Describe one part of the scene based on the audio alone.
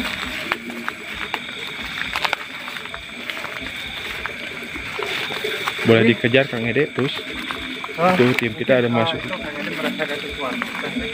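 Footsteps crunch on dry leaves and undergrowth.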